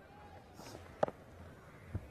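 A cricket bat strikes a ball with a sharp crack.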